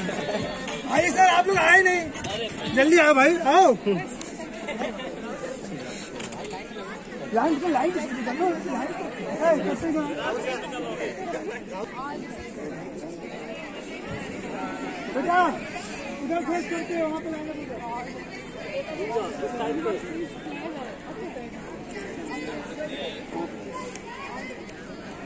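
A group of teenage boys and adults talk and chatter outdoors.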